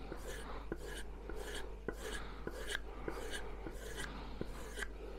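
A knife blade scrapes rhythmically along a block of wood, with short rasping strokes.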